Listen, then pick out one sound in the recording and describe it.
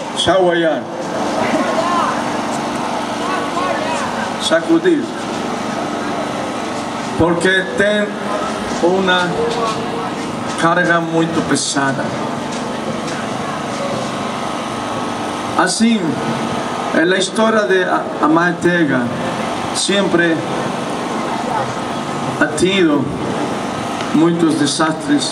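An elderly man sings loudly into a microphone through a loudspeaker, outdoors.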